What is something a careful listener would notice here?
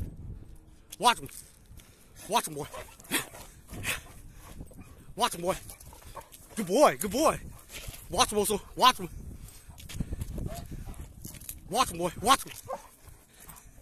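A large dog barks loudly nearby, in short bursts.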